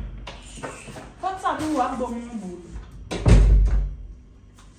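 A door handle clicks and a door thumps.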